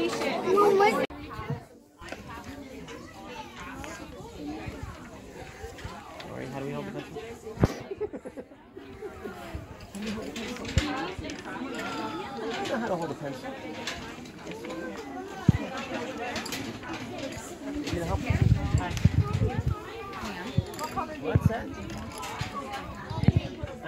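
Children chatter and murmur around.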